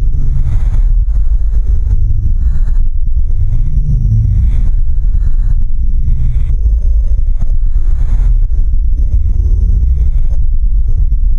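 Upbeat electronic music with a heavy, thumping bass beat plays steadily.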